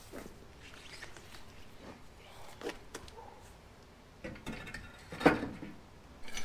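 A heavy tyre thumps and scrapes against a metal rack.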